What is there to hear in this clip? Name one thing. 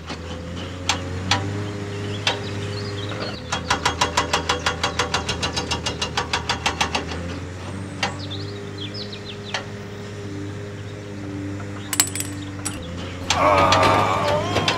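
A small electric motor hums steadily.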